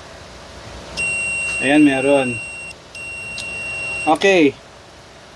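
A multimeter beeps with a steady high tone.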